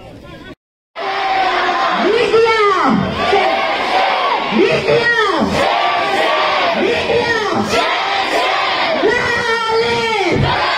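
A large crowd shouts slogans loudly in unison.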